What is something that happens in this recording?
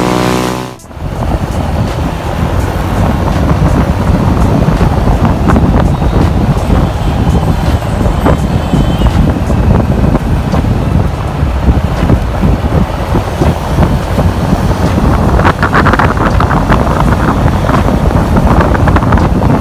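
Wind rumbles and buffets loudly, outdoors on a moving motorcycle.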